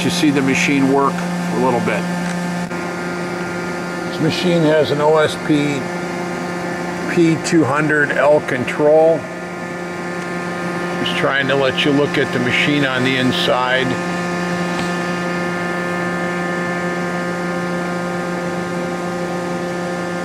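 A large machine hums steadily.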